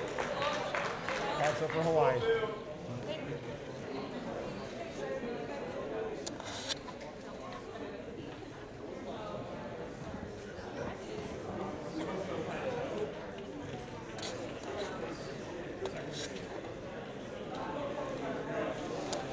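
Men talk quietly in a large echoing hall.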